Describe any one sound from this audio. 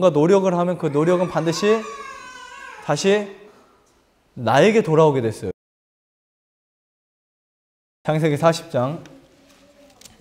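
A young man speaks with animation into a microphone in an echoing hall.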